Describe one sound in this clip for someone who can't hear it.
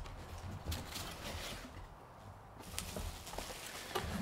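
Cardboard flaps rustle as a box is opened.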